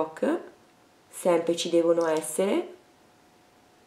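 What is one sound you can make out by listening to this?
A woman speaks softly and close to a microphone.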